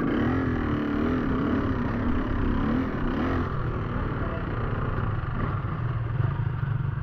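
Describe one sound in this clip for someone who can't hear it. Another dirt bike engine putters and revs nearby.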